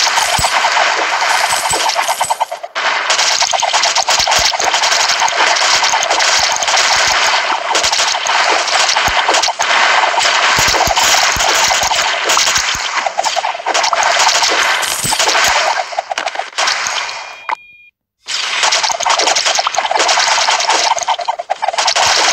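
Rapid game shots and explosions crackle without pause.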